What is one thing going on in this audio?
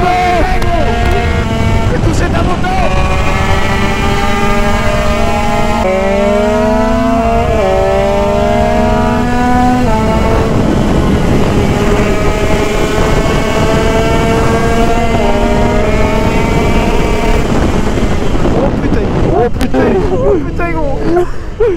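A motorcycle engine drones loudly, shifting up through the gears as it speeds along.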